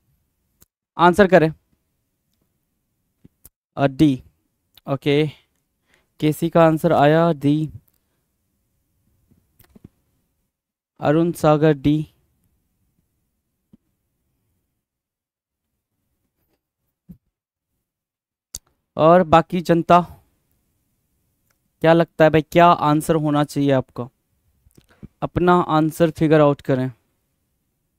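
A man speaks calmly and clearly into a close microphone, in short bursts with pauses.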